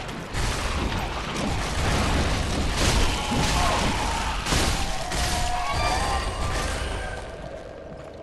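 A giant creature screeches and thrashes in battle.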